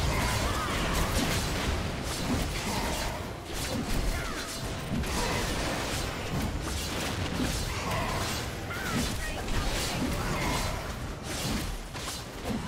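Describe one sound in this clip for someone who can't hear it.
Heavy blows thud against a large monster.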